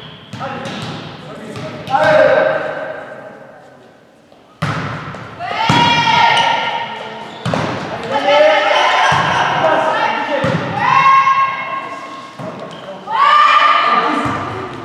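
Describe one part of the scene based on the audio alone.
Young women shout loudly to each other in an echoing hall.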